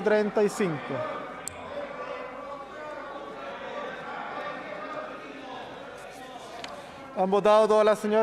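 People murmur softly in a large hall.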